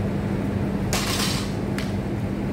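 Heavy weights thud onto the ground.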